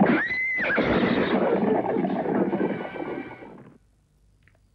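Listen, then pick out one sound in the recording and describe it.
Hooves clop on a dirt path.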